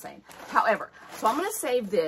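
Paper rustles in a woman's hands.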